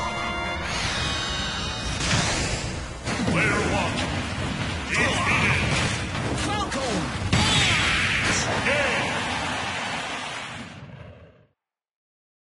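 Punches, whooshes and blasts crash in a fast fighting game.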